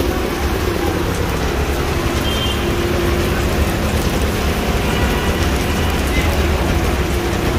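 An auto rickshaw engine putters close by.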